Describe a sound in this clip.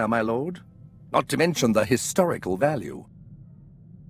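A young man speaks calmly through a microphone.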